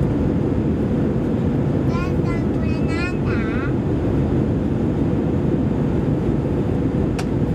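A jet engine roars steadily in flight.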